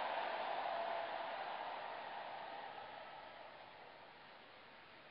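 A large crowd applauds and cheers, slowly fading.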